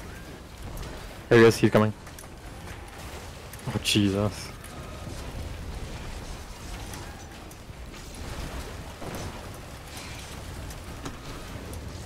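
Game weapons fire and magic blasts burst during a fight.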